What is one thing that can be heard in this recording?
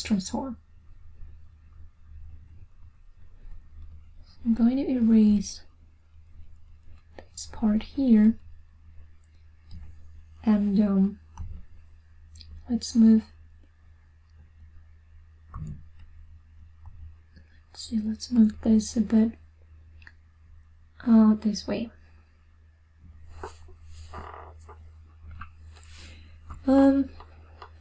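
A young woman speaks calmly in short phrases, close to a microphone.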